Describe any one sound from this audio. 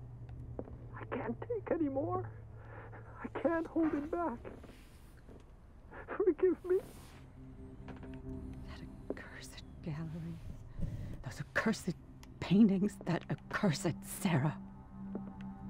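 A woman speaks in distress, close by.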